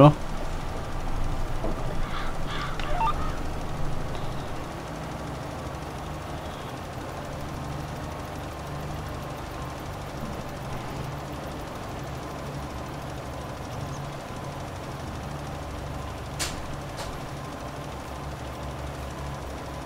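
A spreader hisses as it throws material out behind a tractor.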